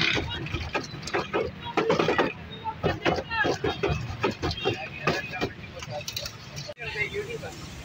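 Crispy fried snacks rustle and clatter in a metal bowl.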